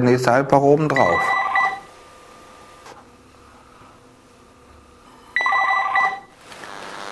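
A phone rings with an electronic beeping tone.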